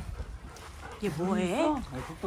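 A dog whines loudly, close by.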